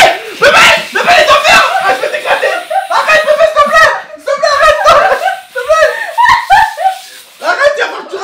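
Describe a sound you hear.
A spray gun hisses, spraying liquid.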